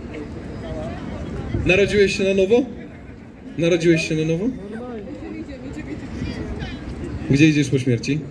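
Footsteps of a crowd shuffle on pavement.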